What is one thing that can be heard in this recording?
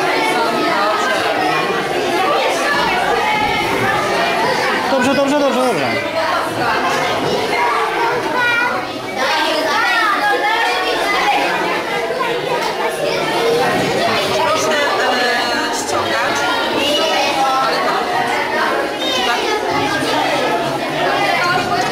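Several young girls talk and chatter close by.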